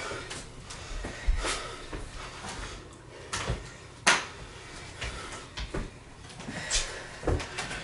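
Hands and feet thump and shuffle on a wooden floor.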